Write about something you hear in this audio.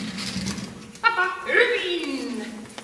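A young woman speaks encouragingly to a dog in a large hall.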